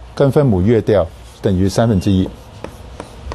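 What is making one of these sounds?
A man speaks calmly and clearly into a microphone.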